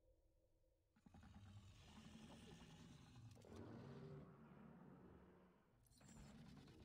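A large creature growls and rumbles deep in a sandy pit.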